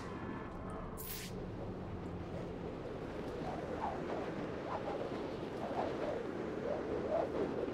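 Wind and rain rush steadily.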